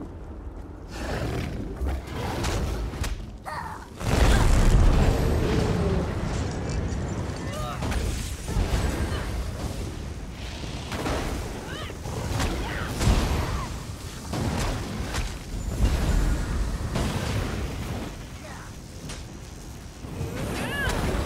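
Magic spells blast and crackle in a game fight.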